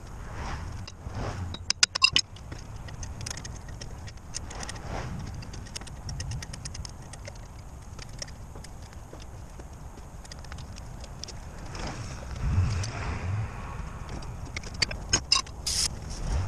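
Metal tools clink and scrape against a steel wheel hub.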